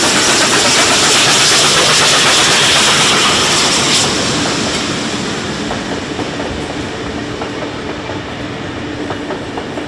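A steam locomotive chuffs heavily as it pulls away.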